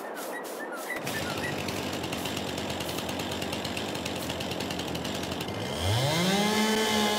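A chainsaw idles and then revs up loudly.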